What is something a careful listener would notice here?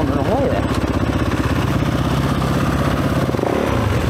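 Another dirt bike engine idles nearby.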